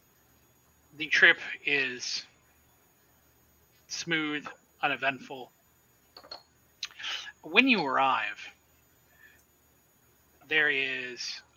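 A man speaks with animation over an online call.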